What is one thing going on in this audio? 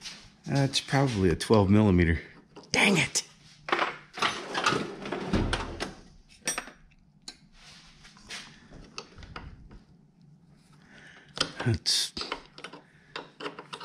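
A wrench turns a bolt with light metallic clicks.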